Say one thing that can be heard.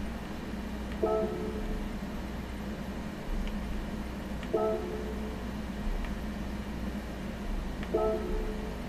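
A game menu plays short chimes as options are picked.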